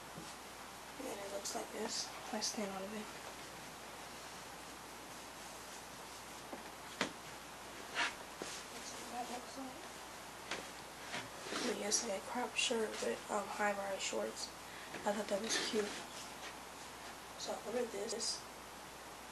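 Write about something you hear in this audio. A young girl talks in short bursts close by.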